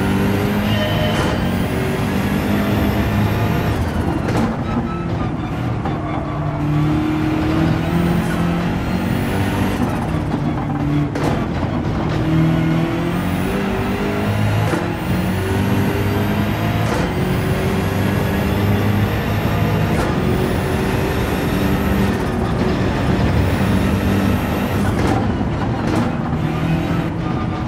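A racing car engine roars, climbing in pitch and dropping sharply at each gear change.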